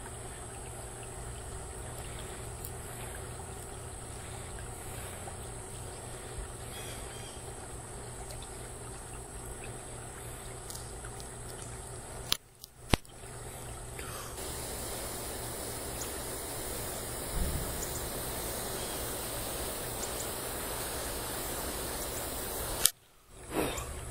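Fingers fumble and tap against a small object close by.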